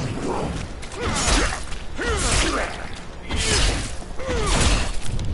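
A knife stabs repeatedly into a body with heavy, wet thuds.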